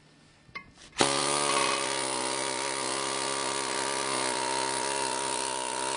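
An angle grinder whines loudly as it cuts into a concrete block.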